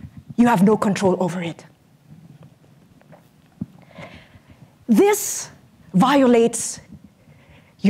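A young woman speaks with animation into a microphone in a large hall.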